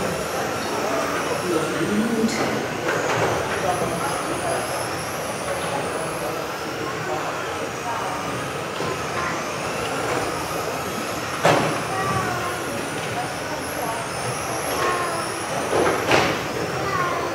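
Small electric model cars whine as they race around, echoing through a large hall.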